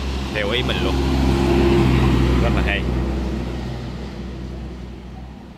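An engine rumbles close by and fades away.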